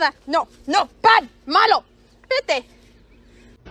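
A rooster clucks and crows in short bursts.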